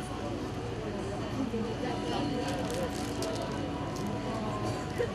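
A man speaks steadily into a microphone, heard through loudspeakers outdoors.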